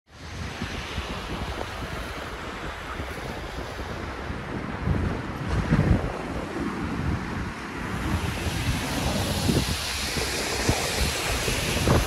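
Strong wind gusts roar into the microphone outdoors.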